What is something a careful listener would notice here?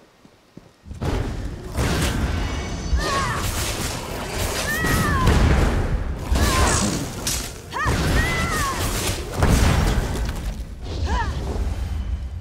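Magic blasts and weapon hits crash loudly during a fight.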